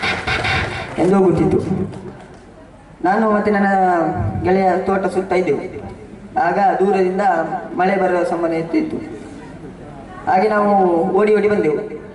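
A young man sings through a microphone and loudspeakers.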